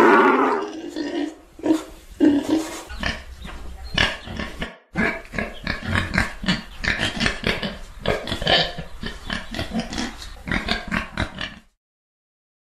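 A wild boar grunts and snorts in quick bursts.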